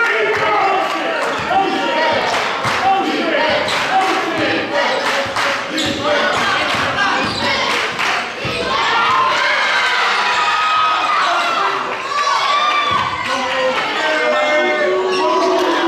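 A crowd cheers and shouts in an echoing gym.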